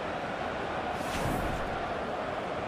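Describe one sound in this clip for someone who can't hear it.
A whoosh sweeps past once.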